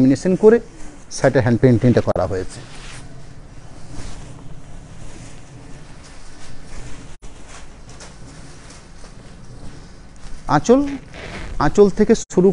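Fabric rustles as it is unfolded and spread out.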